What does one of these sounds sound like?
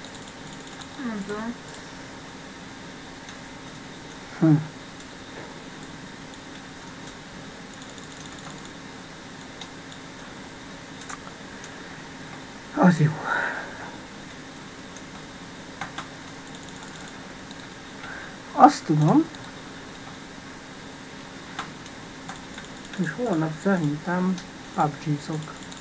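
A young man speaks in short bursts into a close microphone.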